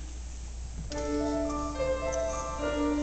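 A children's choir begins singing together.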